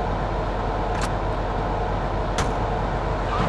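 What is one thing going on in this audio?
A car door opens and shuts with a click.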